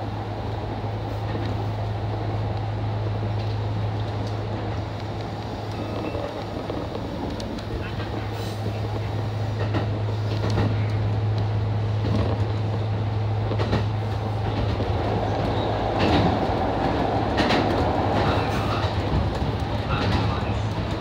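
A train hums steadily as it rolls along the rails.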